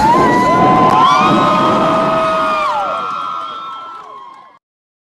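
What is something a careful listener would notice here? Fountain jets of water rush and splash loudly.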